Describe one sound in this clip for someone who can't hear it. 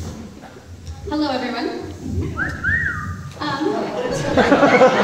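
A young woman speaks into a microphone through loudspeakers.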